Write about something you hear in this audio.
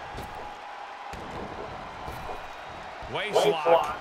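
A body thuds heavily onto a wrestling ring mat.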